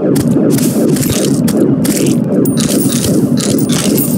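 Blocks crack and break in quick succession as a game character digs.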